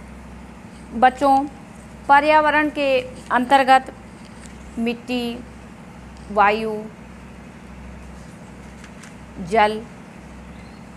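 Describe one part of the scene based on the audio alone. A woman speaks calmly and clearly close to a microphone, in short phrases with pauses.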